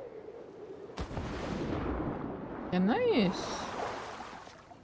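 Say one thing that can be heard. Water splashes as someone dives in.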